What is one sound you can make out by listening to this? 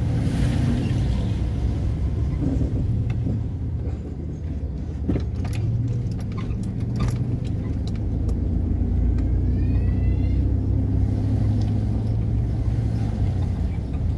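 A vehicle engine rumbles steadily while driving slowly.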